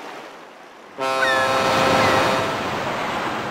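A steamboat's whistle blows loudly.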